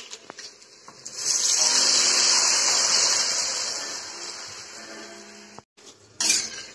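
Water pours into a hot pan and sizzles loudly.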